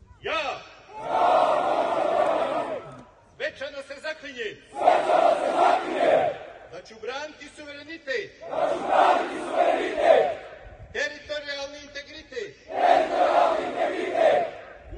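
Many men chant loudly in unison outdoors, in short repeated bursts.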